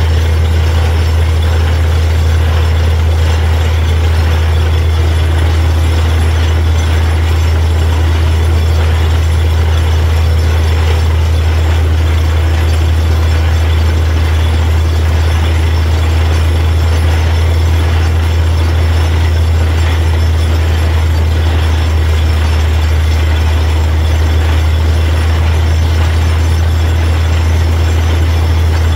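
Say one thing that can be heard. A drilling rig's engine drones loudly and steadily.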